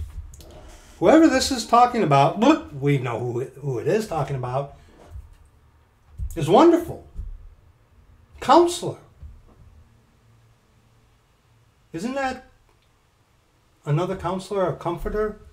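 A middle-aged man speaks with animation close to a microphone, pausing between phrases.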